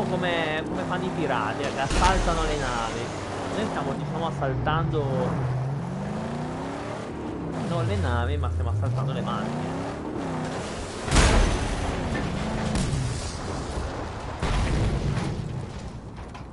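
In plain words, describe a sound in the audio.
A car engine roars and revs at speed.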